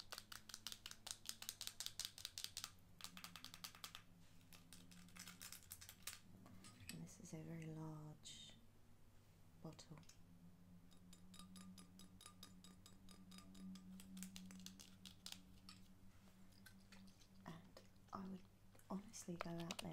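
A glass bottle clicks and rattles in a young woman's hands.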